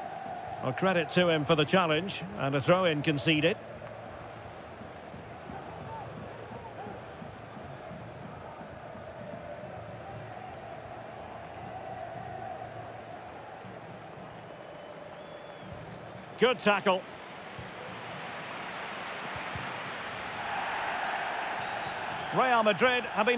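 A stadium crowd murmurs and cheers steadily, swelling near the end.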